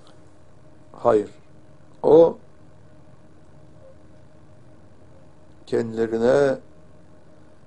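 An elderly man speaks slowly and calmly into a close microphone, with long pauses.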